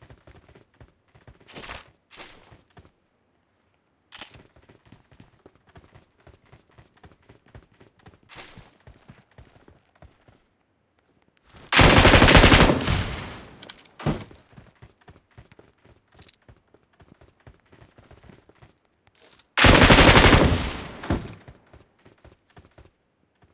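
Footsteps patter quickly over a hard floor.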